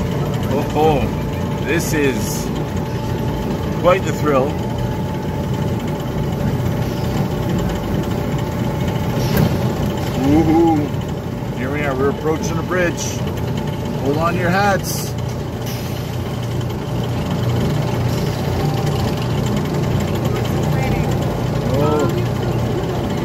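A small ride-on train rumbles steadily along its track.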